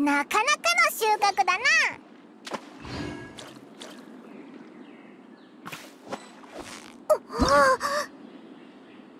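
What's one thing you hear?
Water splashes as a fish is hooked and pulled in.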